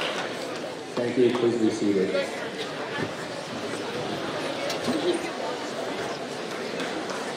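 A young man speaks briefly through a microphone.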